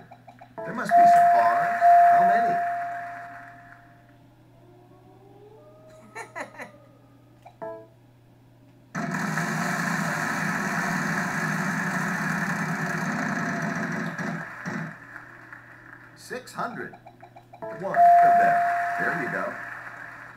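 An electronic chime rings out and fades.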